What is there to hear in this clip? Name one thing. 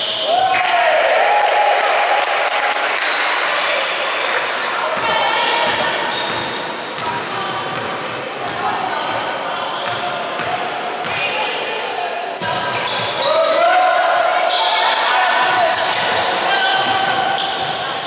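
Young women shout and call out to each other.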